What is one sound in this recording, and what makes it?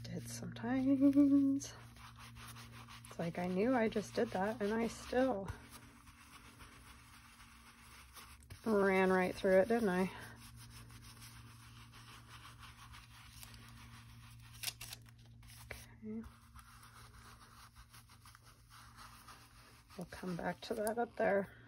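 A small sponge dauber dabs and rubs softly on textured paper.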